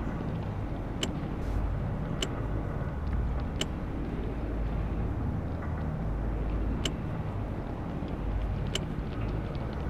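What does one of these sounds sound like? Short, sharp interface clicks sound now and then as menu pages change.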